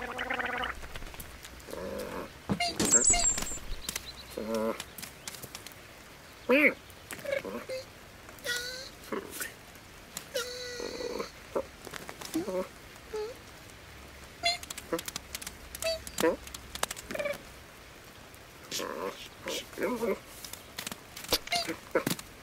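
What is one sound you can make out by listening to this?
Rain patters steadily on the ground.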